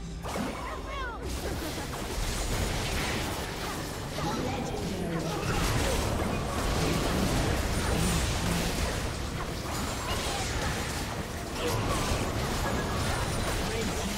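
Game spell effects whoosh, crackle and burst in a hectic battle.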